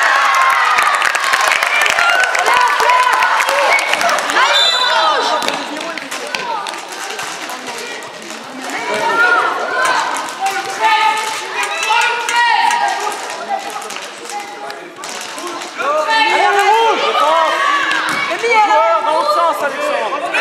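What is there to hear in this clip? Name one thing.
Children shout and chatter in a large echoing hall.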